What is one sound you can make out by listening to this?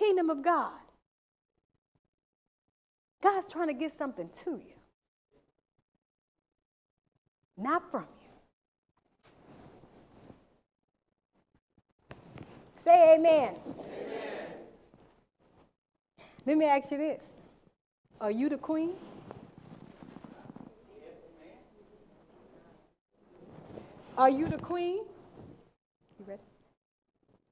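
A woman speaks calmly into a microphone, with pauses between phrases.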